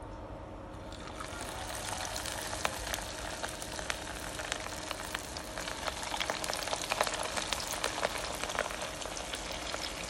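Hot oil sizzles and crackles steadily as fish fries in a pan.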